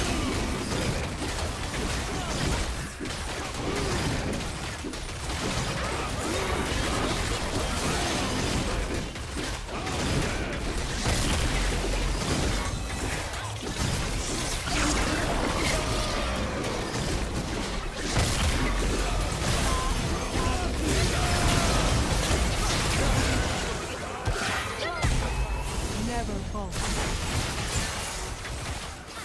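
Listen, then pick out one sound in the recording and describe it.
Magic spells crackle and boom during a video game battle.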